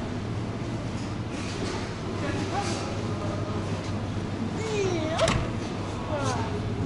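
Refrigerators hum steadily.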